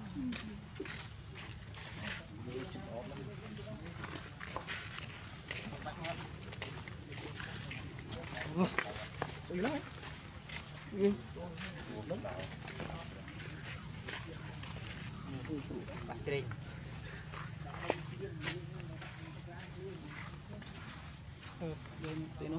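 Small hands scratch and rustle on dry dirt.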